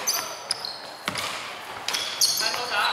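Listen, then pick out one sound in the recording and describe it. A basketball bounces with thumps in an echoing hall.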